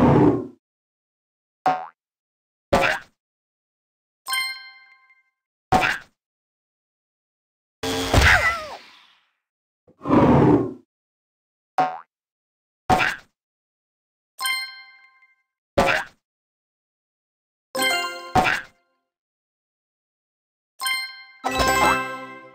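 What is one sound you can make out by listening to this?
Short cartoonish game sound effects pop and chime in separate bursts.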